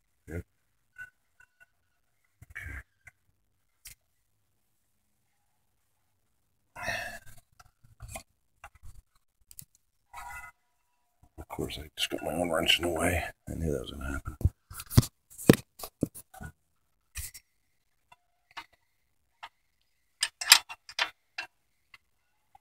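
A metal wrench clicks and clanks against engine parts.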